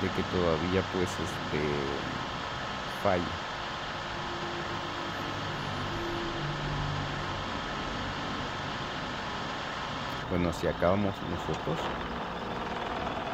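A truck engine drones steadily at highway speed.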